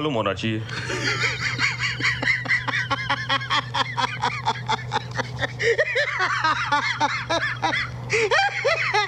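A young man laughs loudly and wildly close by.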